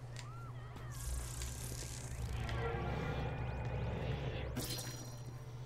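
A crackling energy blast surges and hums.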